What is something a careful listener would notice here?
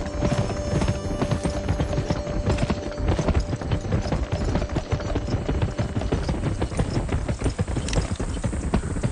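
Hooves pound rapidly on dirt as horses gallop.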